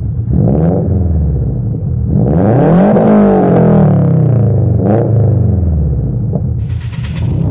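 A sports car engine revs hard and roars through its exhaust, rising and falling.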